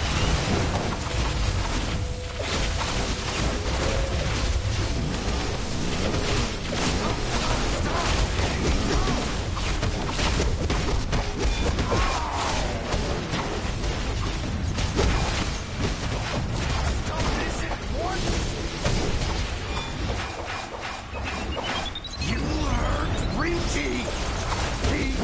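Energy blasts and magical attacks crackle and boom in a fast fight.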